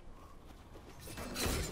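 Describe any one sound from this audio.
A magical whoosh swells up loudly.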